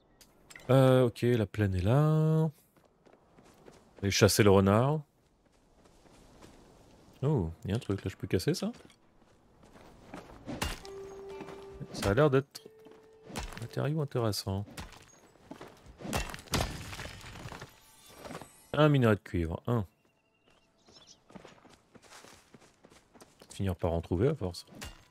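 A man talks with animation close to a microphone, in bursts with pauses.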